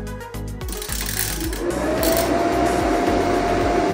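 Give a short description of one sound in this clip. A grill knob clicks as it is turned.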